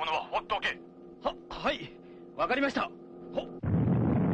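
A young man answers hesitantly.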